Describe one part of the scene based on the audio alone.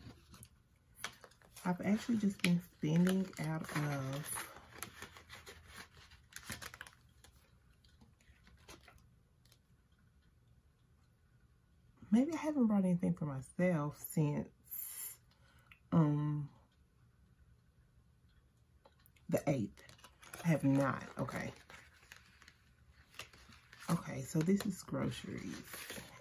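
A paper envelope rustles as it is handled.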